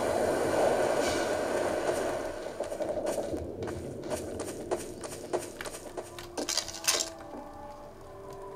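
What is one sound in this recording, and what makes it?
Footsteps crunch on ground.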